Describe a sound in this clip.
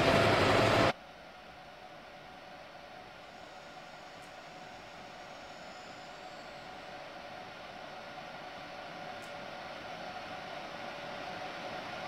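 A distant train approaches, its rumble slowly growing louder.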